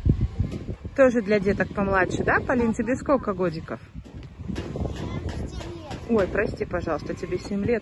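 A young girl talks with animation close by.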